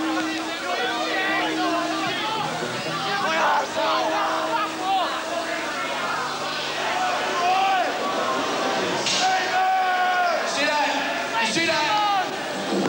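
A rock band plays loud music.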